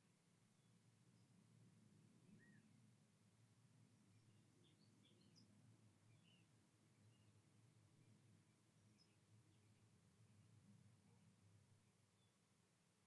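An older man speaks softly and slowly into a close microphone.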